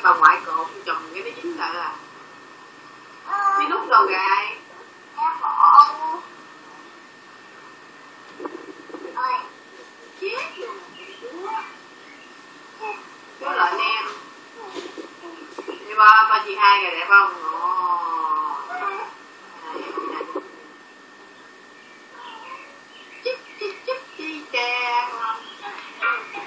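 A woman talks playfully to a baby nearby.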